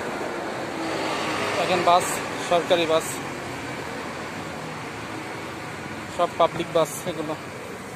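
A bus engine rumbles as a bus drives away along the street.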